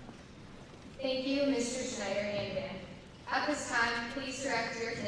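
A young woman speaks calmly into a microphone over loudspeakers.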